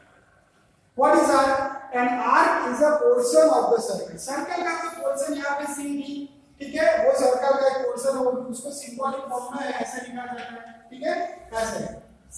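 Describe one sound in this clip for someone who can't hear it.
A man explains calmly and clearly, close by in a room.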